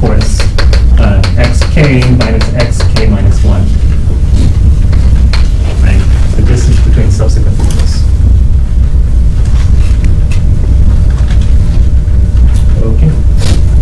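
A young man speaks calmly, lecturing.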